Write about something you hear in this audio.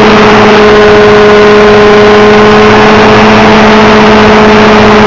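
A model helicopter's engine whines loudly and steadily up close.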